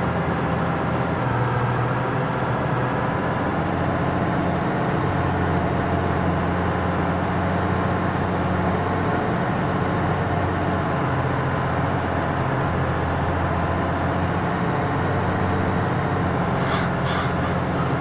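A large tractor engine rumbles steadily.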